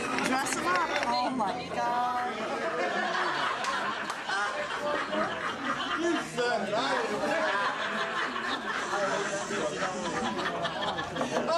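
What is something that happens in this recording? A crowd of men and women talk and laugh loudly all around in a busy room.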